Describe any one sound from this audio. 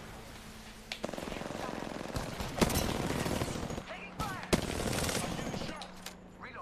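Rapid gunfire from a video game rattles out.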